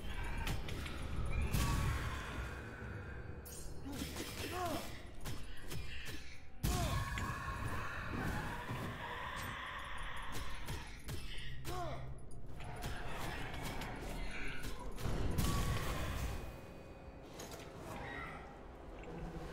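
Game music plays with sound effects throughout.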